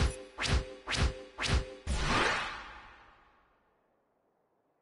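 Electronic chimes ring four times in quick succession, then a last swelling tone slowly fades away.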